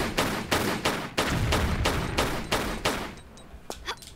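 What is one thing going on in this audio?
Pistol shots fire in rapid succession.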